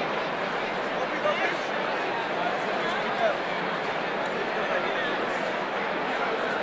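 A large crowd of men and women chatters loudly in a big echoing hall.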